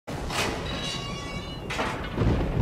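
Iron gates creak open slowly.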